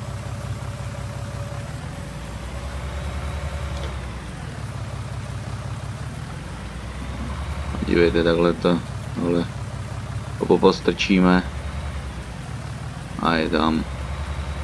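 A tractor engine rumbles steadily at idle.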